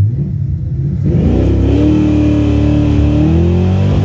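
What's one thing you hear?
A car engine roars loudly as the car accelerates hard, its pitch climbing.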